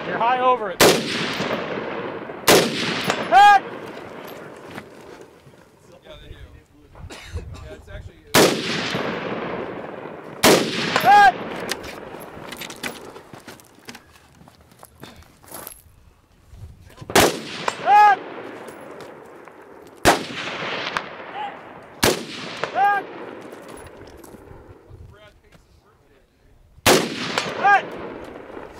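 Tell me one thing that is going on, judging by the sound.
A rifle fires single loud shots outdoors, each echoing off the hills.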